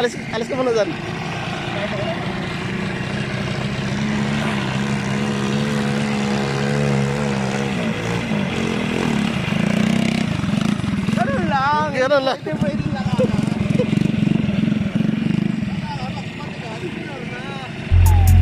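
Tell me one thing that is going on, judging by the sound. A small quad bike engine hums and revs close by.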